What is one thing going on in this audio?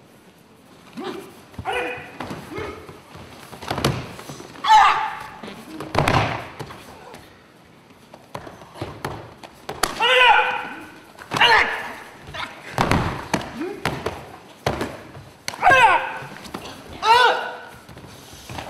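Young men shout loudly as they spar, in a large echoing hall.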